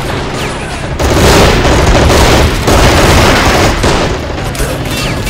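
Gunfire crackles in loud bursts.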